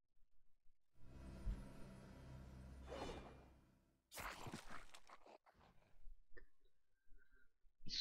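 A magical spell hums and crackles.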